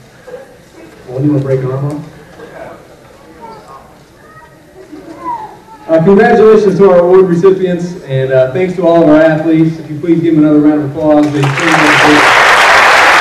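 A young man speaks into a microphone over a loudspeaker, with pauses.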